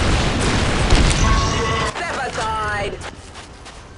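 An explosion booms and flames roar.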